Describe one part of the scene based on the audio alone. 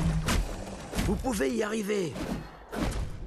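A large beast growls.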